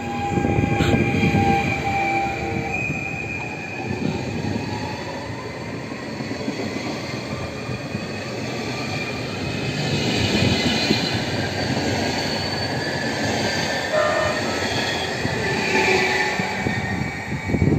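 An electric motor whines steadily as a train moves.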